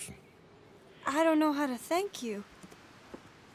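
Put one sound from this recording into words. A woman speaks gratefully, close by.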